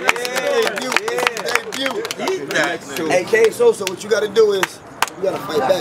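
A crowd of men cheers and shouts in reaction.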